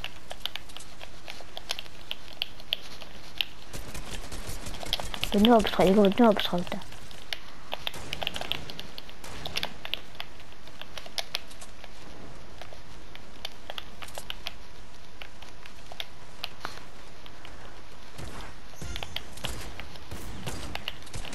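Game building pieces snap into place with rapid clicks.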